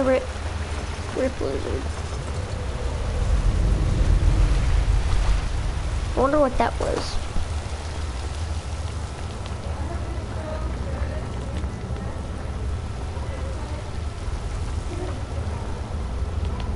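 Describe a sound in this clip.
Footsteps fall on stone.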